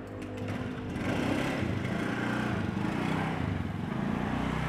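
A motorbike engine starts and runs.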